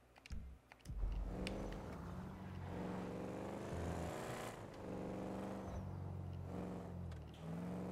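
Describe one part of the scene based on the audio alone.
A car engine revs and hums steadily as the car drives.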